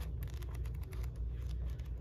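Paper pages rustle as a book is flipped open.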